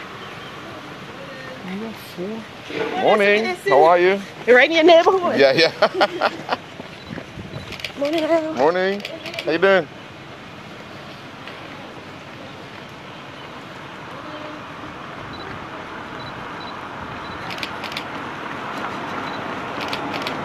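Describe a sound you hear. Runners' footsteps patter on the road.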